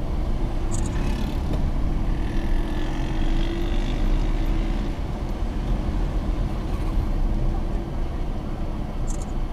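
A motorbike engine buzzes close by.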